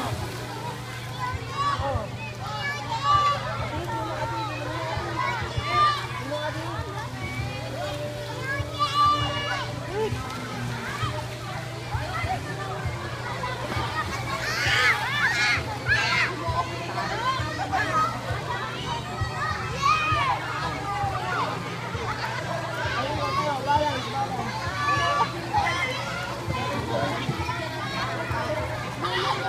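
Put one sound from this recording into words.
A crowd of children and adults chatter and shout outdoors.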